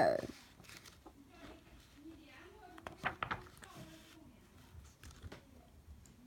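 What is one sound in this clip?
A book page rustles as it is turned.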